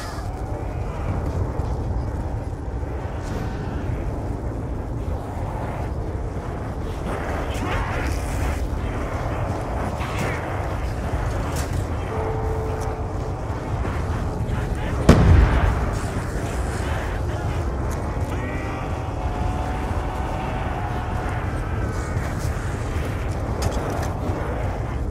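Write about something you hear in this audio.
Wind rumbles low and steady outdoors.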